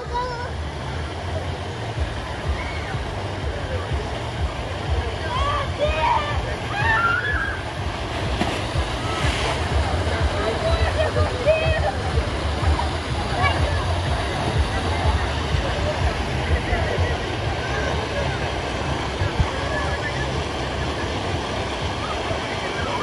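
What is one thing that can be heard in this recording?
Water rushes and gushes down a slide.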